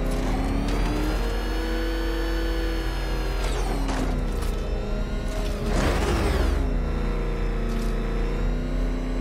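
A powerful car engine roars and revs steadily.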